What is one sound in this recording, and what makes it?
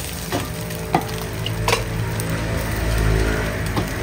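Cooked rice drops into a pan with a soft thud.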